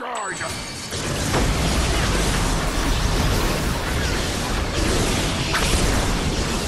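Weapons clash and magic blasts burst in a fast fight.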